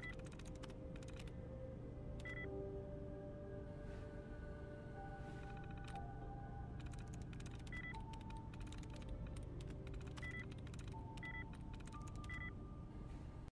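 An old computer terminal gives short electronic beeps.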